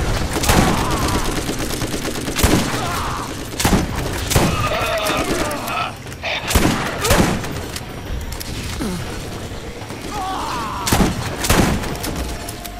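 Gunshots crack loudly, one after another.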